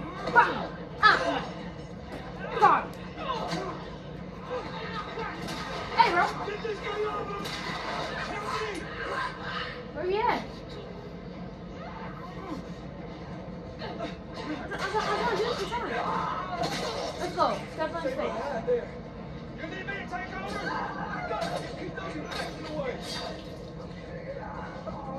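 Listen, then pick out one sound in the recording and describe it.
Blows and thuds of a fight play from a television speaker.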